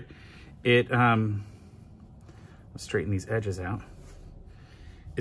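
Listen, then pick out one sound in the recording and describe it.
Cloth rustles softly as it is folded.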